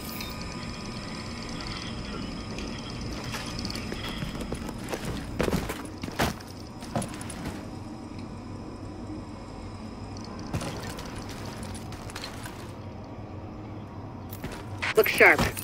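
Boots step across a hard floor.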